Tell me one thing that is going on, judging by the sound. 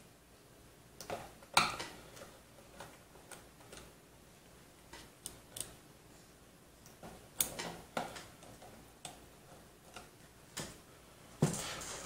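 A screwdriver clicks and scrapes as it turns screws in a metal panel.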